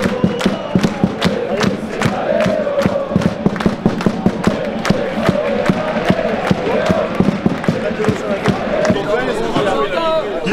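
Fans clap their hands in a quick rhythm.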